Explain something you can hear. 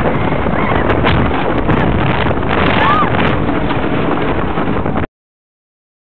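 A wooden roller coaster rumbles and rattles loudly along its track.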